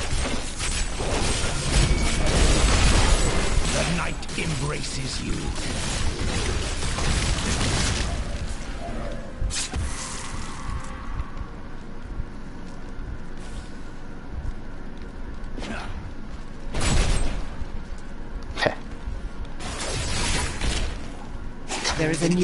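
Weapons clash and slash in a fierce game battle.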